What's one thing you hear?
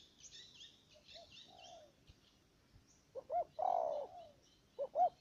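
A dove coos loudly nearby in soft, repeated calls.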